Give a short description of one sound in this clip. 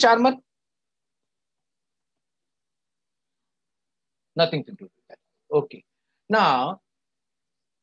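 A middle-aged man speaks in bursts over an online call, with a long pause.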